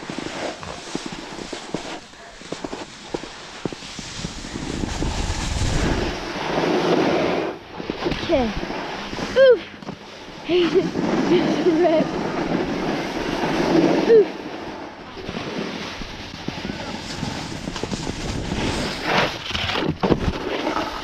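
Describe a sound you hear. A snowboard scrapes and hisses over packed snow.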